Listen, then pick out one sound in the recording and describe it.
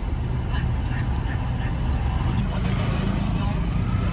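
Motorcycle engines putter close by.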